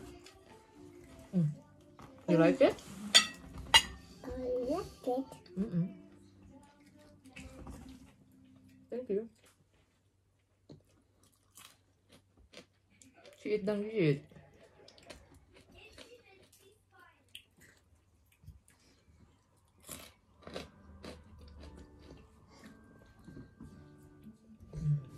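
Cutlery and fingers clink against plates.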